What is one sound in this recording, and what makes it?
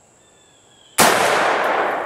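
A rifle fires a single loud shot outdoors.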